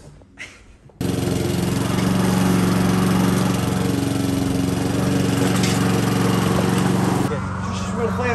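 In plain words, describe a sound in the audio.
A lawn mower engine runs with a steady drone.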